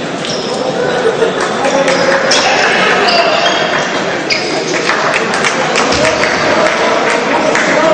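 A crowd of spectators murmurs in a large echoing hall.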